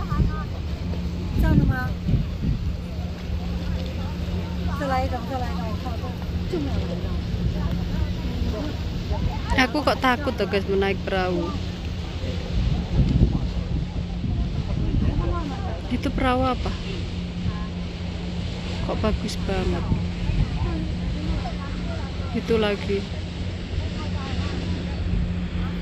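Water laps and splashes against a harbour wall.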